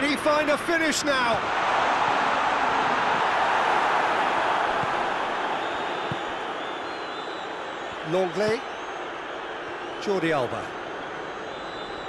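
A large stadium crowd roars steadily, loudest at first and then slowly quieting.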